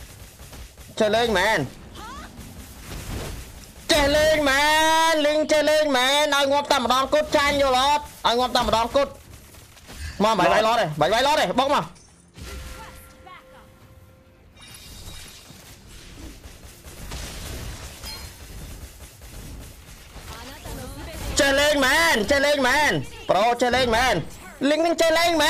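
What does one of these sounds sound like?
A boy talks excitedly and loudly into a nearby microphone, in bursts.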